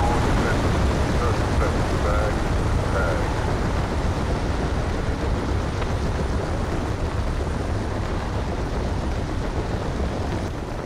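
Wind rushes loudly and steadily past a falling skydiver.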